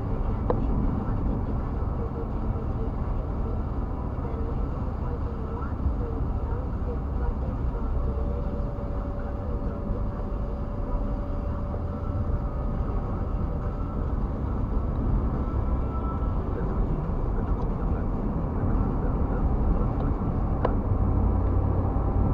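A car engine hums steadily inside the cabin while driving.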